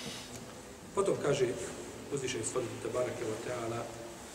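A man speaks calmly and steadily into a close microphone.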